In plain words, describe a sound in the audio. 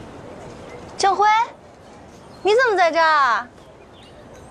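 A young woman calls out cheerfully nearby.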